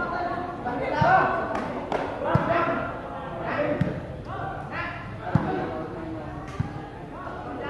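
A ball is kicked with sharp thumps, again and again.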